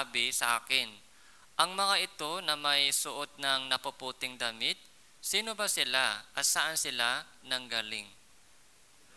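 A young man speaks clearly and calmly into a close microphone.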